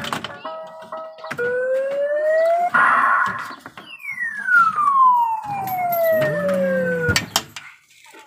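A claw machine plays electronic beeps and sweeping tones.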